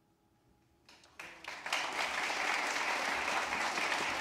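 An audience bursts into loud applause.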